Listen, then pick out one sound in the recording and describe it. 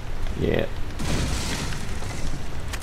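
A wooden crate splinters and breaks.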